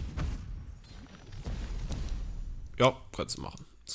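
A magical blast bursts with a sharp whoosh.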